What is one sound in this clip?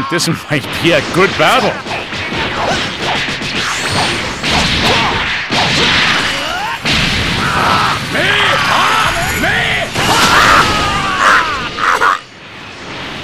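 Punches and kicks land with sharp thuds and whooshes.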